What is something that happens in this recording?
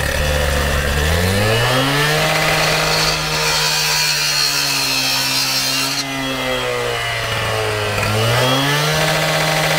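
A petrol cut-off saw revs up and down.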